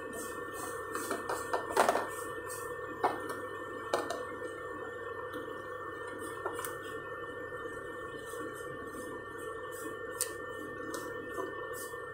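A plastic lid clicks and clatters as it is removed and fitted back.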